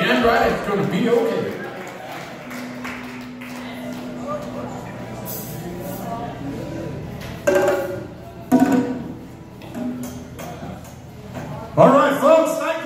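A band plays electric guitars and drums.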